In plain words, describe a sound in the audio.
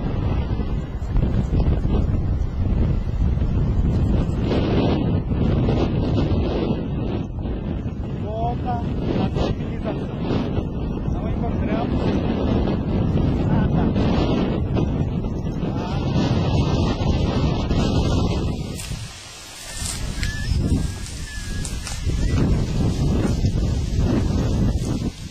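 Strong wind buffets the microphone outdoors with a deep, rushing roar.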